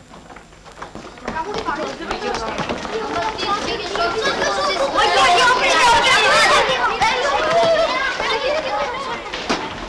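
A group of boys shout and chatter excitedly in an echoing corridor.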